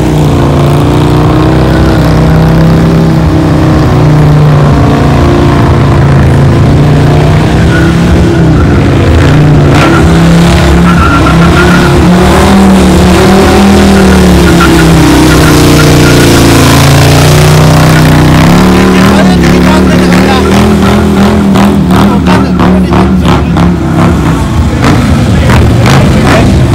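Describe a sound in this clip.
A motorcycle engine revs hard and loud.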